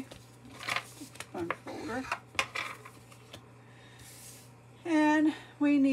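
Card stock slides across a table.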